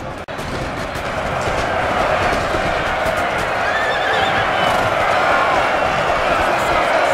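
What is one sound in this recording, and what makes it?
A crowd of men shouts and yells in battle.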